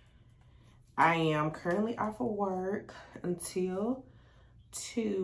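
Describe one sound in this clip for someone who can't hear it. A young woman talks animatedly close by.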